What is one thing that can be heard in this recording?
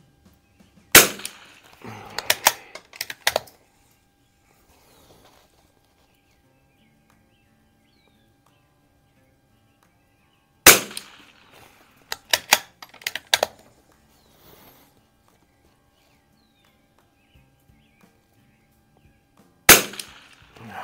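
A rifle fires loud single shots with a sharp echo outdoors.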